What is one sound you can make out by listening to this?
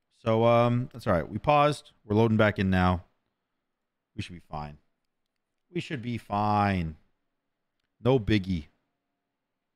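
A young man speaks with animation, close to a microphone, in short bursts.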